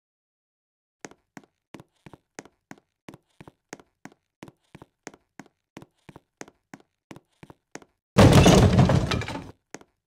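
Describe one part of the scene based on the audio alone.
Footsteps tap along at a quick, steady pace.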